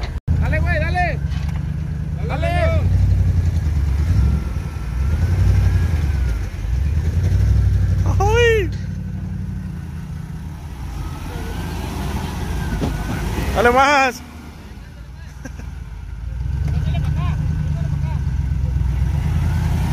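Tyres spin and churn through mud.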